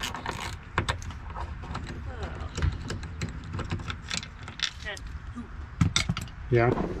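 Small plastic clips click and rattle as a door panel is worked on by hand.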